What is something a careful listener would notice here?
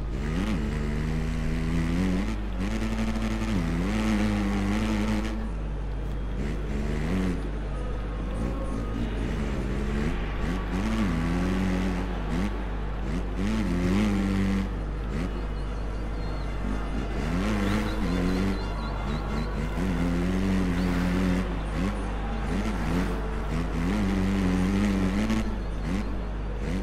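A motorcycle engine revs up and down, buzzing loudly as it races.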